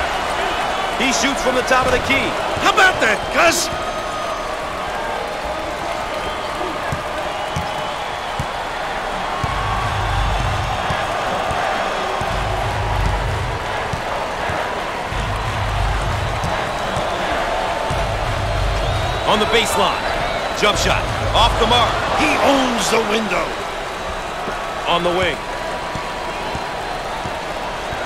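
A crowd roars steadily in a large arena.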